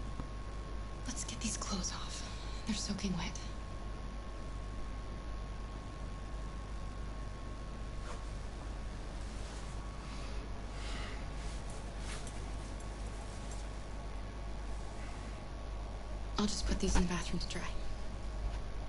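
A woman speaks gently and close by.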